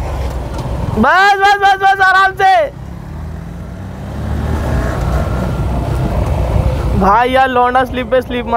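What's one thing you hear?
A motorcycle engine rumbles up close.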